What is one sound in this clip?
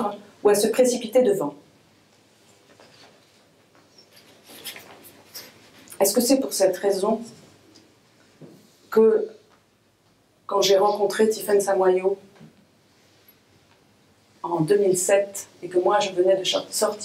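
A woman reads aloud calmly into a microphone, in short phrases with pauses.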